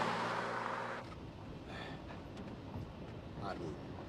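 A car engine hums from inside a moving car.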